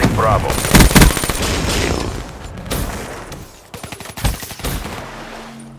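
Gunshots crack out in short bursts.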